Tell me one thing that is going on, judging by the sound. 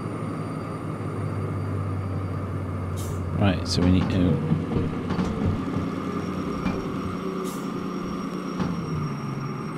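A diesel locomotive engine rumbles while under way.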